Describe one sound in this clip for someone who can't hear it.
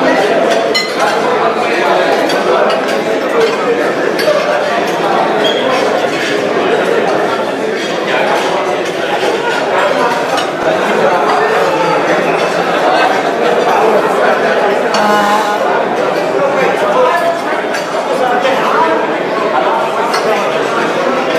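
A crowd of men chatter and talk over one another indoors.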